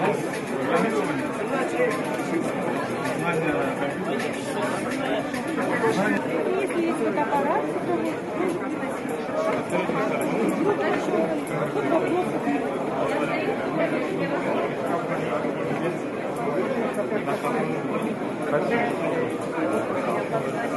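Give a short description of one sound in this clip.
A crowd of young people chatters steadily indoors.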